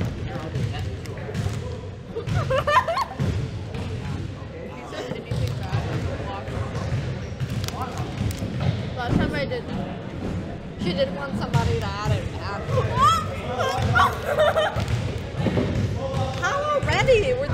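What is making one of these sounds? Teenage girls chat and laugh close by.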